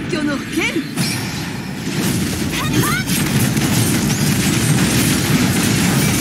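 Loud explosions boom and roar.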